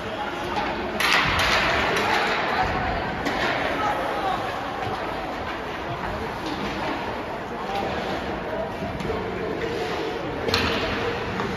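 Hockey sticks clack against a puck in a large echoing hall.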